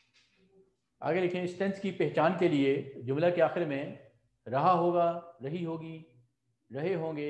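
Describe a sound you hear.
A middle-aged man speaks loudly and with animation into a microphone.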